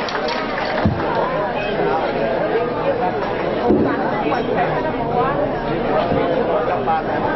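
Many people chatter in the background.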